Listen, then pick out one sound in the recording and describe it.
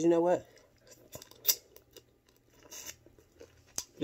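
A woman smacks her lips while eating.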